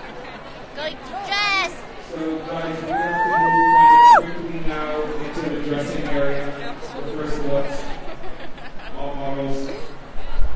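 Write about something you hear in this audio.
Young women talk and laugh excitedly close by.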